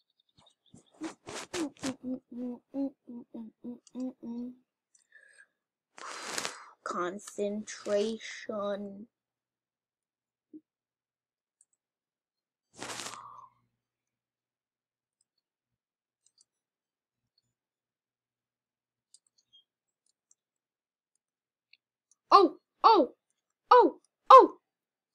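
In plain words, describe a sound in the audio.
A young boy talks with animation into a headset microphone, in short bursts.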